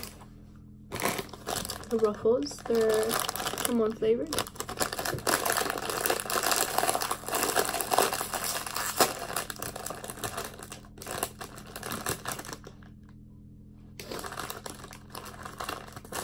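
A crisp packet crinkles and rustles as it is handled and torn open.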